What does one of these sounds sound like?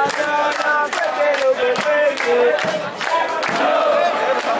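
Hands clap in rhythm.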